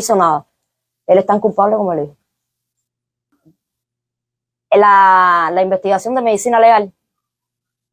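A woman speaks emotionally, heard through a recording.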